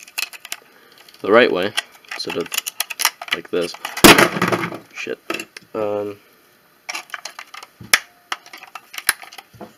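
Plastic parts click and rattle as hands handle them.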